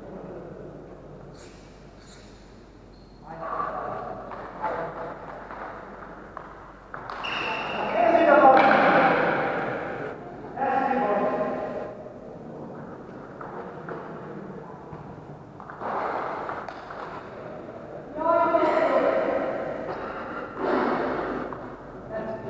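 A ping-pong ball clicks back and forth on paddles and a table in an echoing hall.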